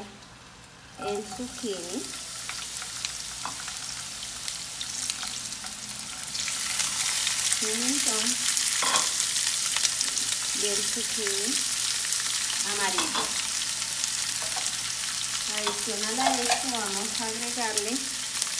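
Vegetables sizzle in a frying pan.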